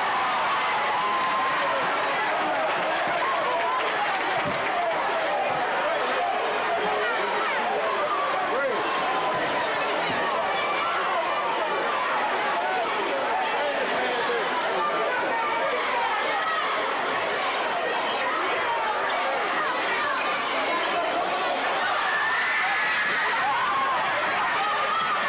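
A large crowd cheers and shouts in an echoing gym.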